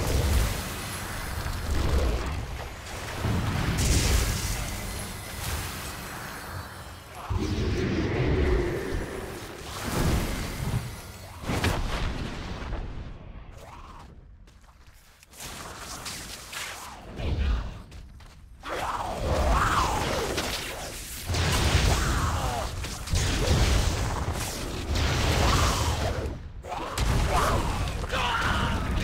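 Fantasy game combat effects clash and crackle.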